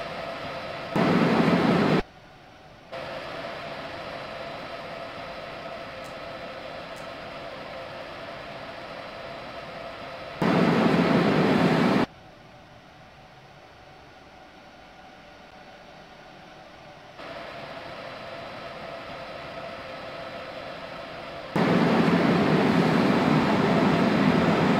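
Wheels rumble loudly on the track, heard from inside the train's cab.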